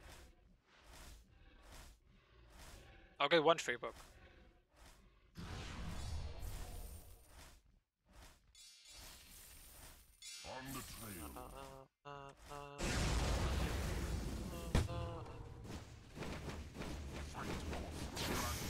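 Clashing and magical effects of a game battle play.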